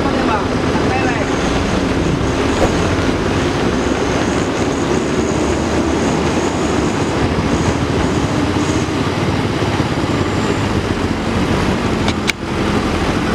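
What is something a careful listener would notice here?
A loaded truck's diesel engine labours as the truck grinds slowly through mud.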